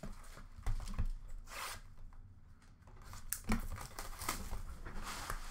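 A card pack's plastic wrapper crinkles in a hand.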